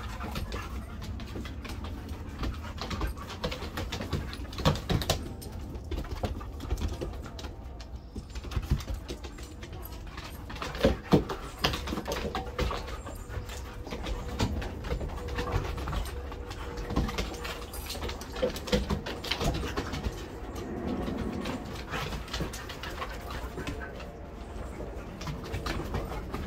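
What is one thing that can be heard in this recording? Paws patter and scratch on a wooden deck.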